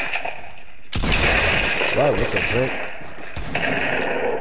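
Gunfire cracks in a video game.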